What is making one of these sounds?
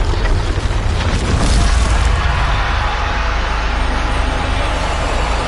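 Ice shatters and crashes loudly.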